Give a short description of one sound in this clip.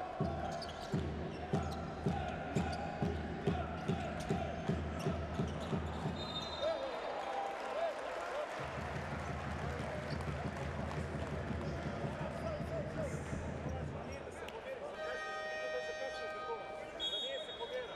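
A crowd cheers and chants in a large echoing arena.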